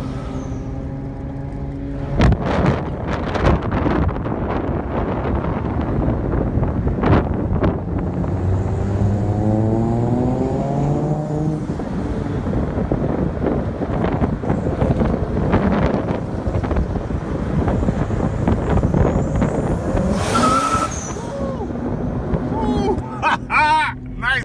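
A car engine hums steadily while driving through city traffic.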